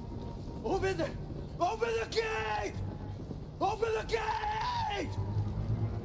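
A man shouts urgently, with a strained voice.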